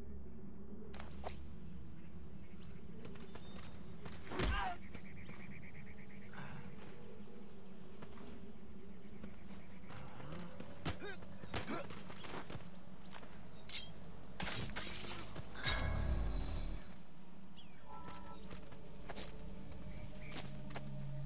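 Footsteps crunch on dry, gravelly ground.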